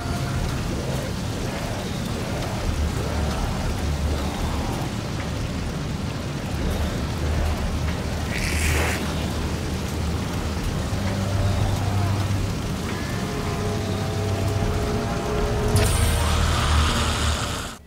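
A deep rumble drones steadily.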